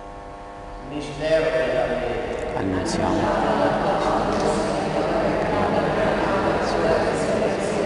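An older man speaks in a large echoing hall.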